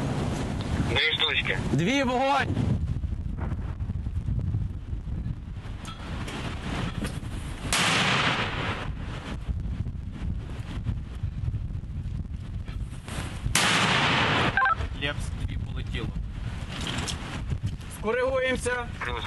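A man speaks briefly through a crackling two-way radio.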